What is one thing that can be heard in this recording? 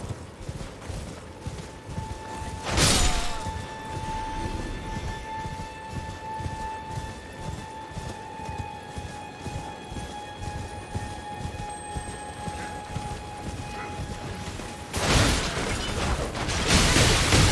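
A horse's hooves thud rhythmically in a steady gallop.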